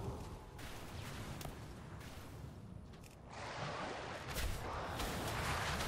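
Spell effects crackle and whoosh in a game battle.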